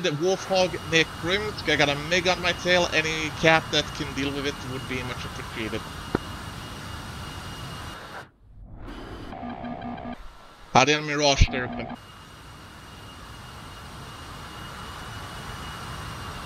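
A jet engine roars steadily as a low-flying plane passes.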